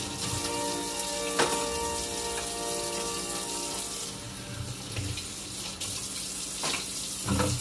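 Metal dishes clink and clatter in a sink.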